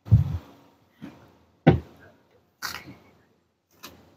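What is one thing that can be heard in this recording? A car door clicks open.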